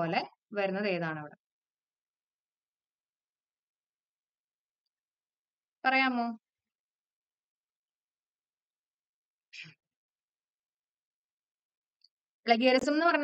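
A young woman speaks calmly into a close microphone, in short phrases with long pauses.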